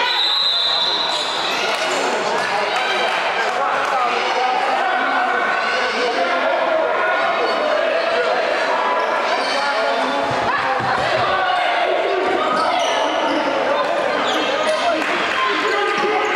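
Children call out and shout across the court.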